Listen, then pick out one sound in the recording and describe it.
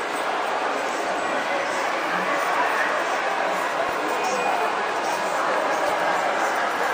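A crowd murmurs throughout a large echoing hall.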